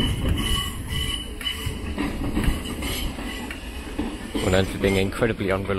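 A train rolls slowly along the tracks with a low rumble.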